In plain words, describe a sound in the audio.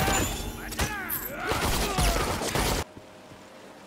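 Sword strikes clash and whoosh in a fast fight.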